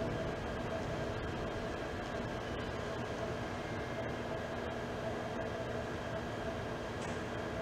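An audience murmurs softly in a large hall.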